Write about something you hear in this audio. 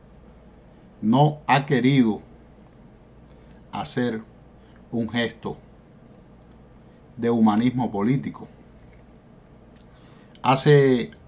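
A middle-aged man speaks calmly and close up, in short phrases with pauses.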